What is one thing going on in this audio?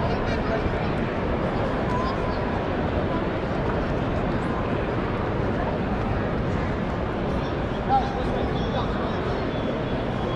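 A large crowd chatters and cheers in a big echoing arena.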